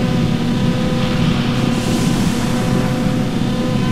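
A hissing noise rises in the electronic sound near the end.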